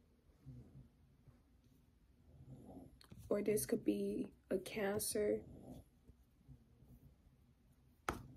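Cards slide and rustle under a hand.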